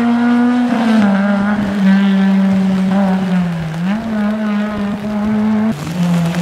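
Tyres hiss through water on a wet road.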